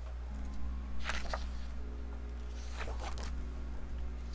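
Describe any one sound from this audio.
A paper page rustles as it is turned over.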